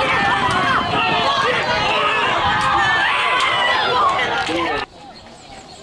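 A crowd of men cheers and shouts excitedly.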